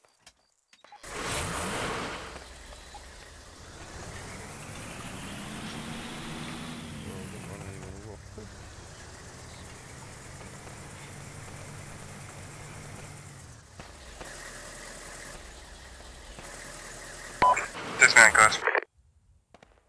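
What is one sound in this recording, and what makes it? A truck engine roars as the truck drives over rough ground.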